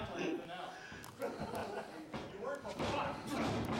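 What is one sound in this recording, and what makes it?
A wrestler slaps an opponent with a sharp smack.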